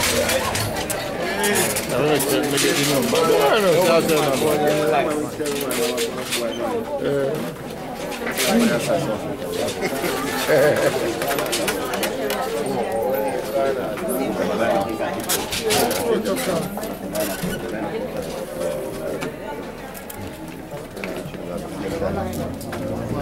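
A crowd of men and women murmur and talk nearby.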